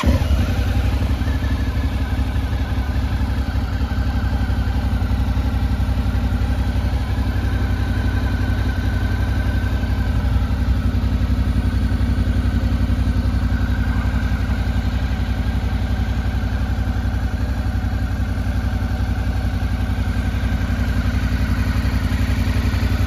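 A motorcycle engine idles with a steady, low, fast putter.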